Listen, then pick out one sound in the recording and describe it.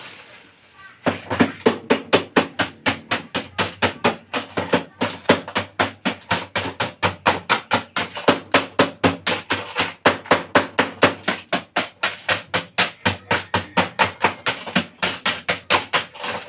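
A blade scrapes rapidly and rhythmically against a frozen tube.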